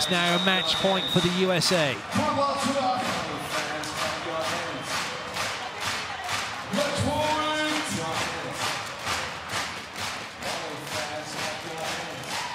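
A large crowd claps in a steady rhythm in a big echoing arena.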